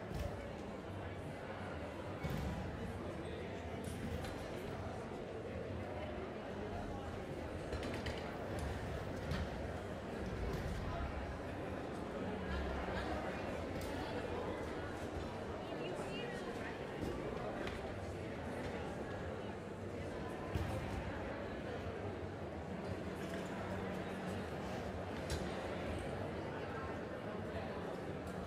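Chairs and music stands knock and clatter now and then.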